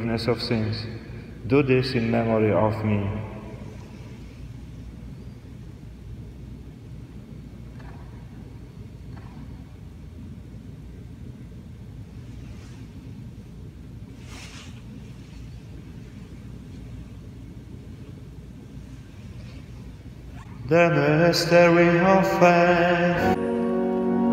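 A man chants into a microphone in an echoing hall.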